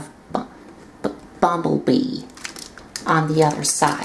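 Plastic parts of a toy click and rattle as hands handle it.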